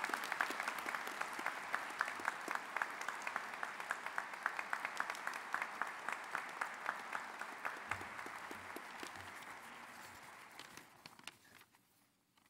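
An audience applauds in a large hall, and the applause slowly fades.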